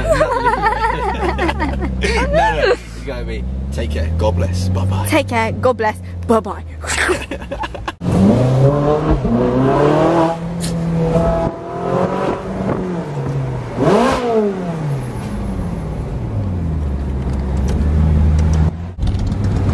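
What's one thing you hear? A car engine hums steadily while driving, with pitch rising and falling.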